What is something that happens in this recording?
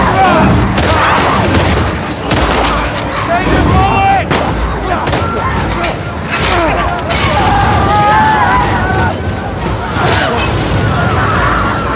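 A crowd of creatures snarls and groans.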